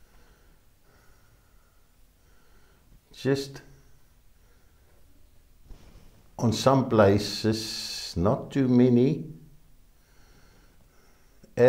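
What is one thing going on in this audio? A paintbrush dabs softly on canvas.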